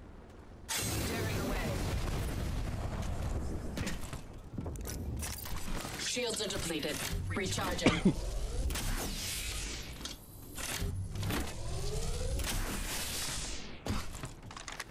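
A rushing whoosh sounds as a character slides along a zip line.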